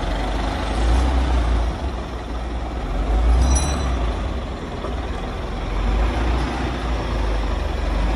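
Hydraulics whine as a loader bucket lifts.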